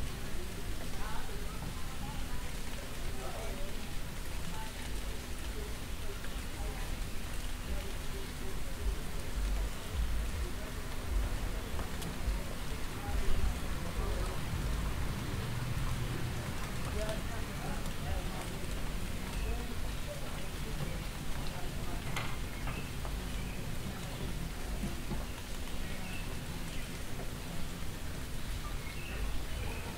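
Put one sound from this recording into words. Adults chat outdoors in a street.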